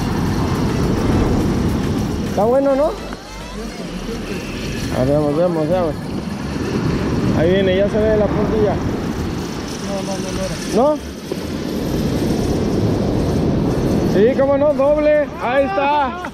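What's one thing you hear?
Waves crash and wash up onto a beach.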